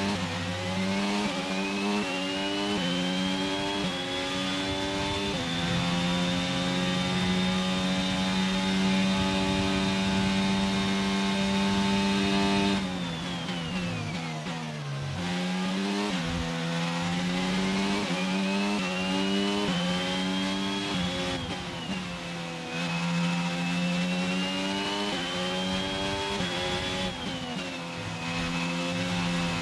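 A racing car engine screams loudly, rising in pitch through the gears.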